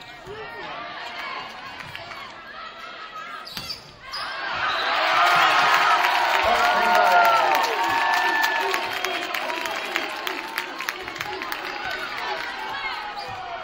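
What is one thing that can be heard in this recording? A volleyball thuds off hands and the floor.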